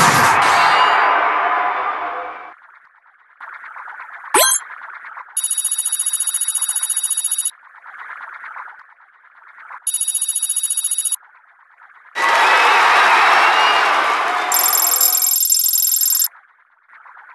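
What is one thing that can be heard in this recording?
Game sound effects chime and whoosh loudly.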